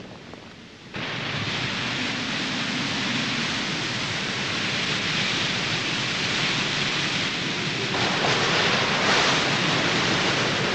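Water rushes and ripples steadily.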